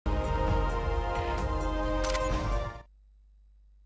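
Upbeat music plays loudly, then cuts off abruptly.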